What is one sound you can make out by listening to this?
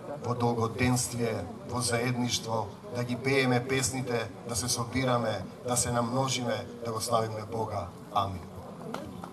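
A middle-aged man speaks with animation through a microphone outdoors.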